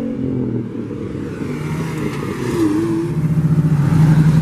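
A small roadster accelerates past.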